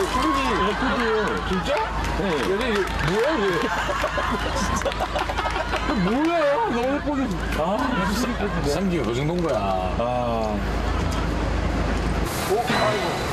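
Young men talk and laugh loudly inside a car.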